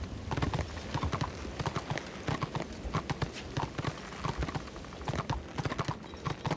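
Hooves clop at a steady gallop.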